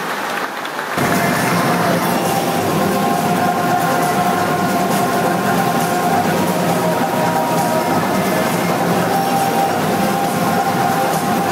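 Loud music plays over loudspeakers.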